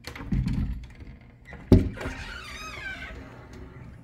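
A wooden cabinet door swings and knocks against its frame.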